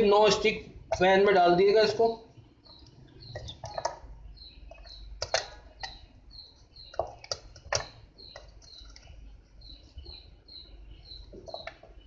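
A knife knocks and scrapes against chocolate pieces in a metal pan.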